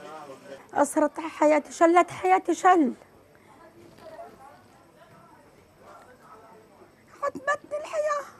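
A middle-aged woman speaks with emotion close to a microphone.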